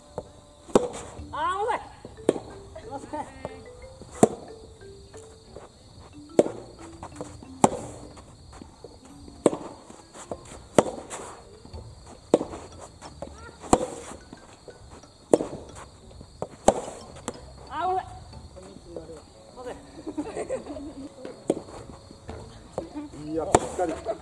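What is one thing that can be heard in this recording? Tennis balls are hit sharply with rackets in a steady rally, outdoors.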